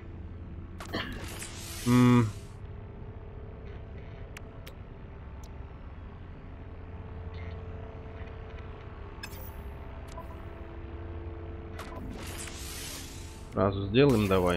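A game menu gives a soft whoosh as it opens.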